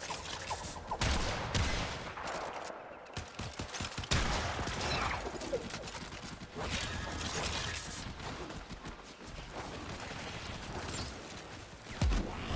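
Sharp impacts and blasts burst out repeatedly.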